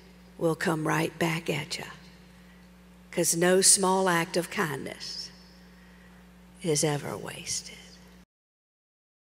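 A middle-aged woman speaks with animation into a microphone.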